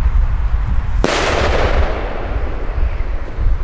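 A firework bursts with a loud crackling pop overhead.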